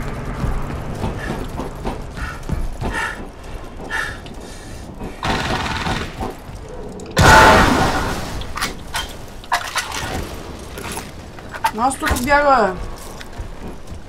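Heavy footsteps clank on metal.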